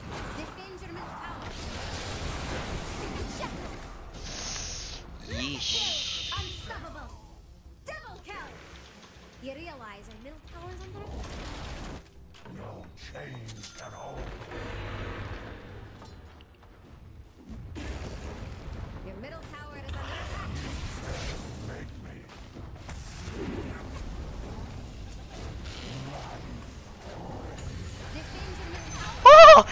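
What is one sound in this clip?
Spell effects crackle and whoosh in a video game battle.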